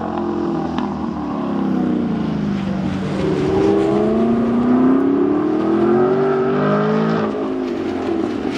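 A car engine revs up and down as a car speeds through turns.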